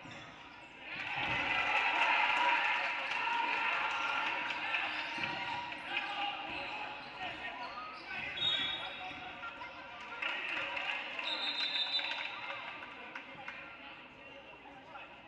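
A crowd in an echoing gym cheers and shouts, swelling suddenly and then slowly dying down.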